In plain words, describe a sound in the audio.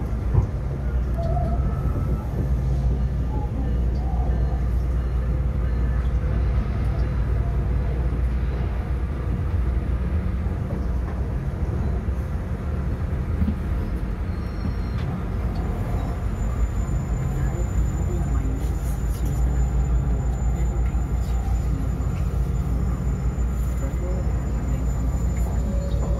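A train rumbles steadily along the tracks, heard from inside a moving carriage.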